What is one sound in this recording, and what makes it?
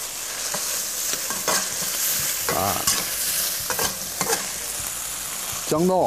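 Food sizzles in a hot wok.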